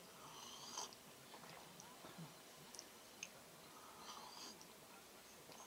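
A woman sips a hot drink from a cup.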